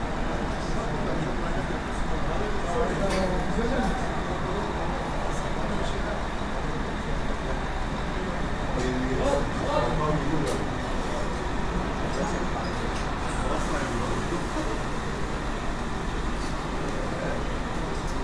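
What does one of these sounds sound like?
A crowd of men murmurs and chats nearby.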